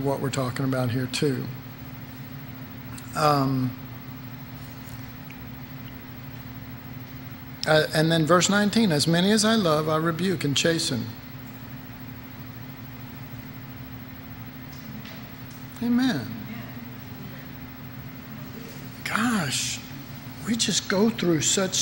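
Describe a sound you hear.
An elderly man speaks calmly into a microphone, with pauses between phrases.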